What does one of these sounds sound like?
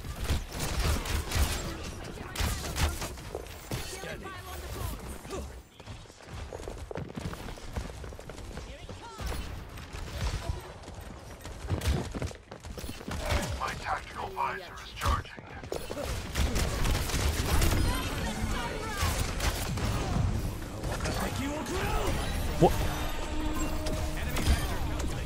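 Bow shots twang and whoosh in quick bursts.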